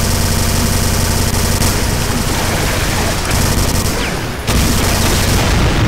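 A rapid-fire gun rattles in quick, continuous bursts.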